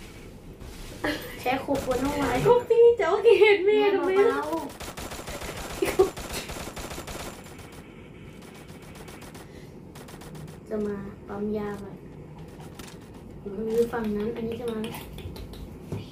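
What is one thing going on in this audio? A child talks excitedly close by.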